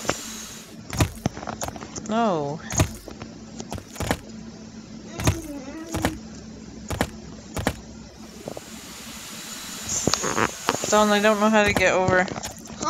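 Short electronic game blips sound as a character jumps.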